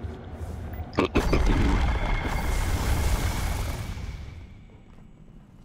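A loud blast roars and rumbles, then slowly fades.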